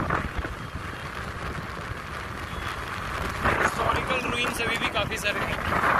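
An auto-rickshaw engine putters past on a road.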